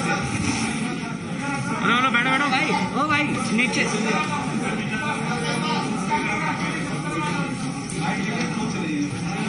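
A crowd of men and women chatter and call out nearby, in a room that echoes.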